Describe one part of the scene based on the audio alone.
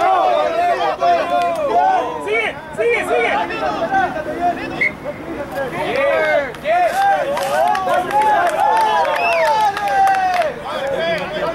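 Men shout and call out to each other outdoors across an open field.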